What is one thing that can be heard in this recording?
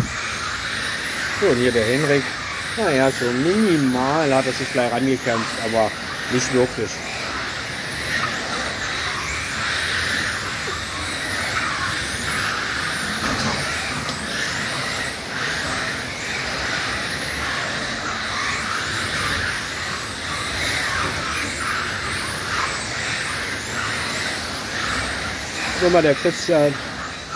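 Small electric model cars whine at high pitch as they speed around, rising and falling as they pass.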